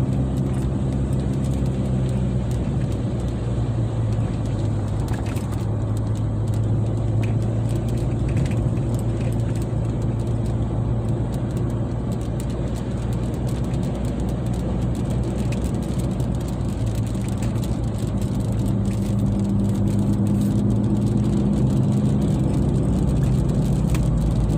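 Rain patters on a car's windshield.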